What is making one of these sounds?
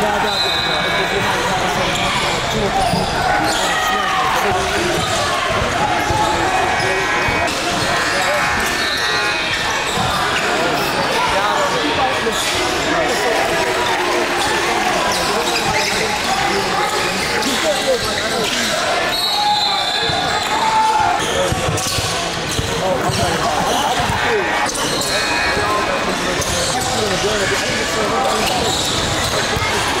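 A crowd of spectators murmurs and cheers in an echoing gym.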